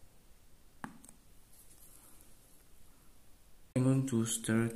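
Water fizzes softly in a cup as a tablet dissolves.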